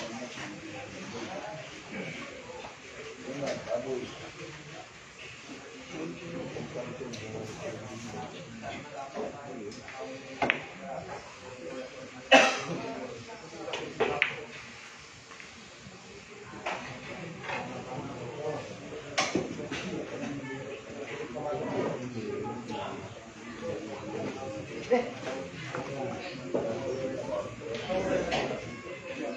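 A crowd of men murmurs and chatters nearby.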